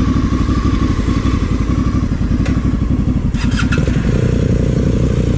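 A motorcycle engine idles with a steady, throbbing rumble close by.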